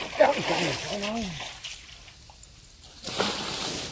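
A small animal splashes in shallow water.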